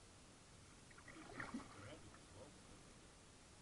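A man talks calmly from a short distance across open water.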